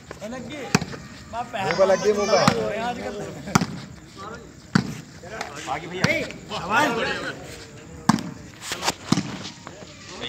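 A ball is struck with sharp smacks.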